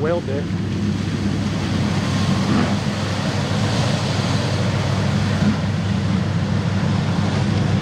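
Mud splashes and sprays against a truck.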